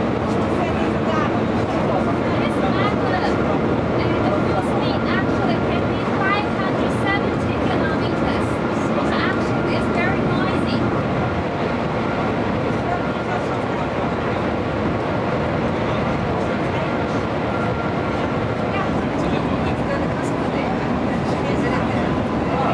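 A high-speed train rumbles and roars steadily from inside a carriage.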